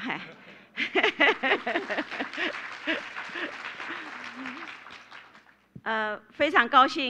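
A middle-aged woman speaks warmly into a microphone over loudspeakers in a large hall.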